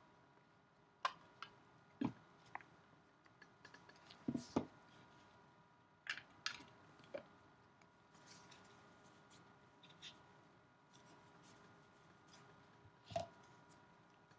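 Gloved hands handle a plastic card case with sharp clicks and taps.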